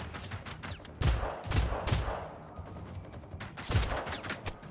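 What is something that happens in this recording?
Gunshots bang loudly, several times.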